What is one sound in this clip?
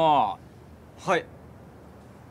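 A second young man answers briefly from a short distance.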